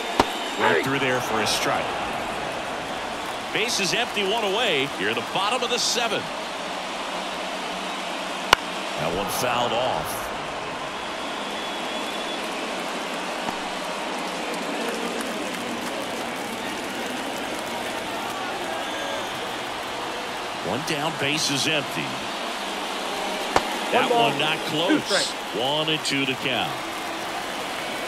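A crowd murmurs steadily in a large ballpark.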